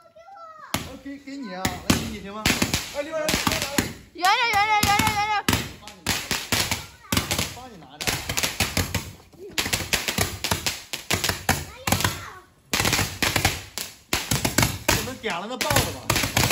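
A young man shouts and laughs with excitement nearby.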